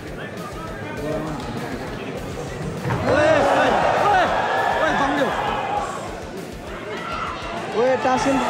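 A crowd cheers and shouts loudly, swelling as the fight heats up.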